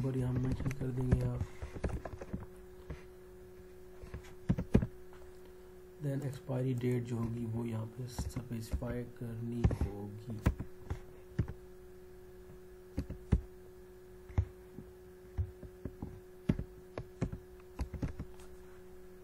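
Keys clatter on a computer keyboard in short bursts.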